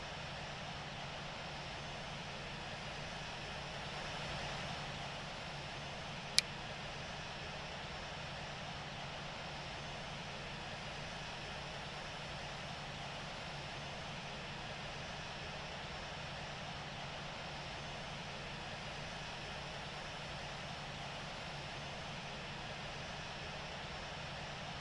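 A jet engine hums steadily as an airliner taxis.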